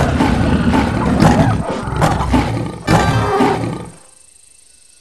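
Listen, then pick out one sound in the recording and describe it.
A big cat growls and snarls fiercely up close.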